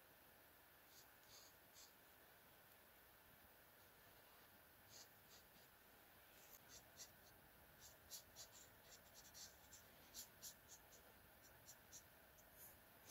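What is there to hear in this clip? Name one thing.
A marker tip squeaks and scratches softly on paper.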